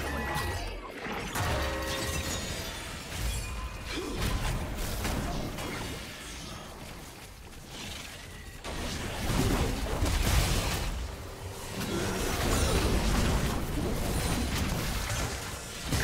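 Video game spell effects crackle and boom during a fight.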